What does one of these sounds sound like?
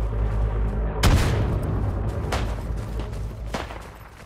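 A gun fires several loud shots that echo outdoors.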